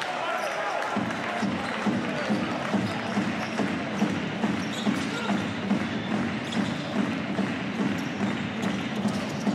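A basketball bounces on a hard court in a steady rhythm.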